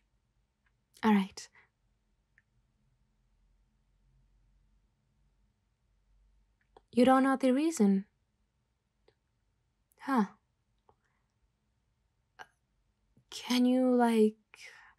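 A young woman speaks in short, calm phrases with long pauses.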